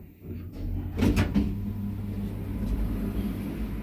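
Elevator doors slide open with a clunk.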